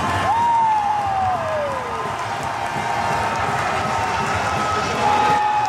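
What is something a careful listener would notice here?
Young men cheer and shout together in a large echoing arena.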